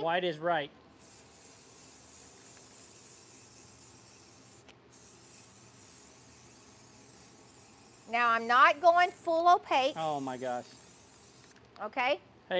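An aerosol can sprays with a steady hiss.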